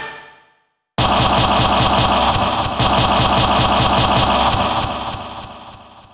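A loud booming, buzzing roar bursts in and slowly fades.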